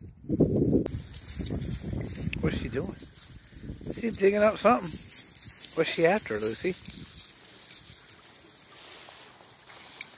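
A dog sniffs and laps at shallow water close by.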